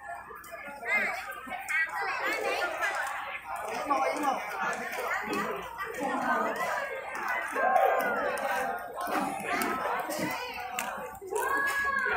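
A crowd of men and women cheers and calls out excitedly.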